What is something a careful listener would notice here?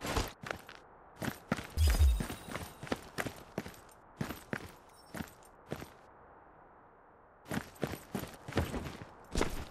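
Footsteps thud and scrape on a hard floor.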